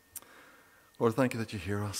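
A middle-aged man begins speaking calmly through a microphone.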